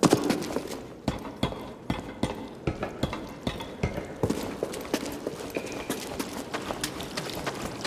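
Footsteps crunch steadily over rocky ground.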